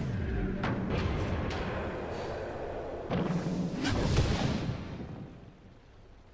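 Blasts and impacts boom loudly.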